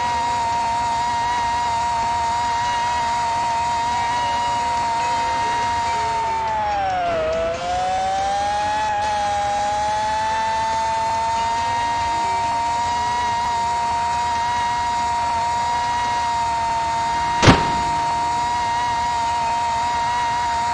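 A racing car engine whines steadily at high revs, dipping briefly in pitch as it slows for a bend.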